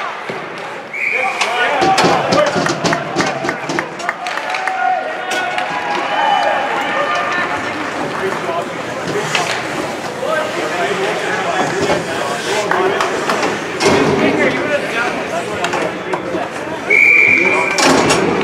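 A referee's whistle blows short shrill blasts.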